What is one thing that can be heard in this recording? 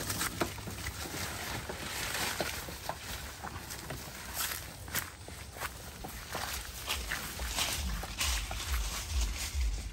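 Footsteps crunch on dry leaves and grass.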